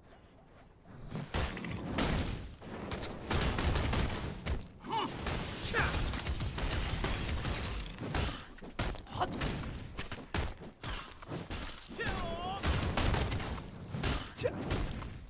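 Weapon strikes and magic blasts hit a giant scorpion with loud bursts.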